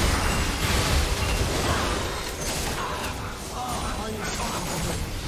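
Game spell effects crackle and burst in a fast fight.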